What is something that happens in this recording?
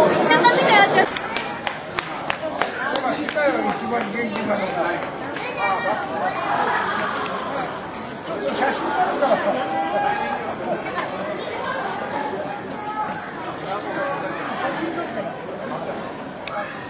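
Men and women talk nearby.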